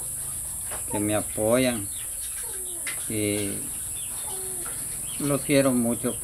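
An elderly man speaks calmly, close by, in short phrases.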